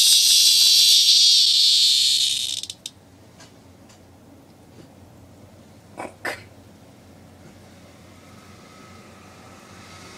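A cat chews and gnaws at something on the floor.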